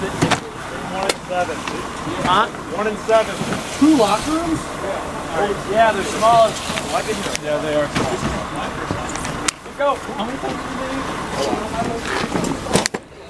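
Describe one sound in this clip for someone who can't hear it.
Young men shout and talk loudly nearby.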